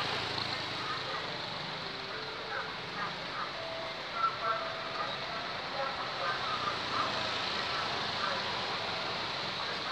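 A motorbike engine passes close by.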